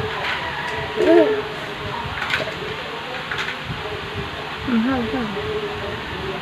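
A toddler babbles briefly.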